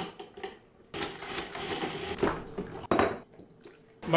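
A food processor whirs, chopping cauliflower.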